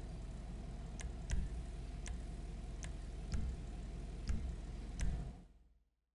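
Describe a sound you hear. Menu selection clicks sound in quick succession.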